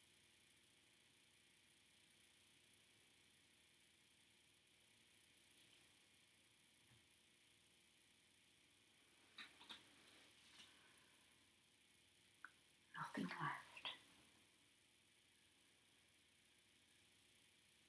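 A fine comb scrapes through short hair.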